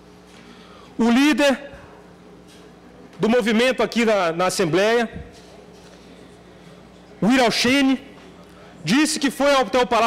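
A man speaks with animation into a microphone, with pauses between phrases.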